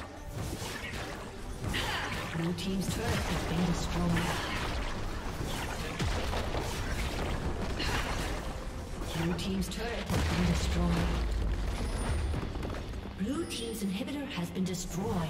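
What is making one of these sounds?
Spell effects crackle and blast in quick bursts.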